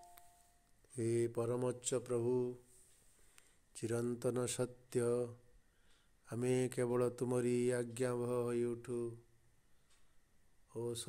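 A man speaks calmly and clearly into a microphone, with pauses.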